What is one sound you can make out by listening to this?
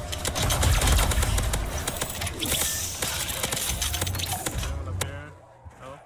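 Rapid gunfire crackles and bangs in quick bursts.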